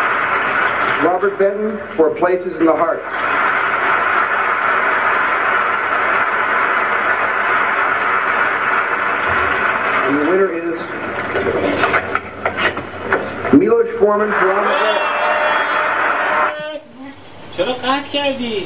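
A man speaks with animation from a short distance away.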